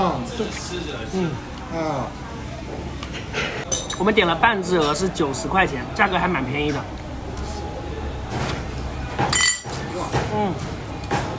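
A young man speaks casually and close by.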